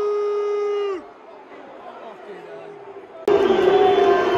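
A large crowd murmurs in the background.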